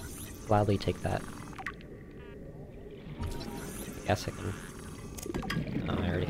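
A handheld scanner hums and whirs while scanning.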